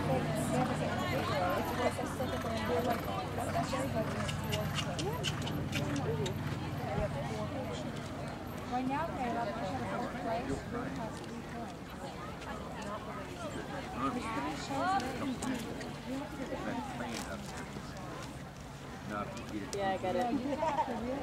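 A horse canters on soft sand with dull hoofbeats.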